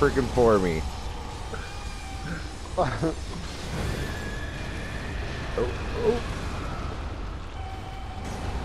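Flames roar and burst in loud blasts.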